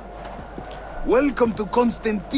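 A man speaks calmly and up close.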